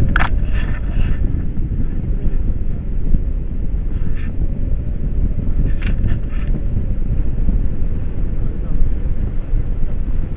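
Strong wind roars and buffets loudly outdoors.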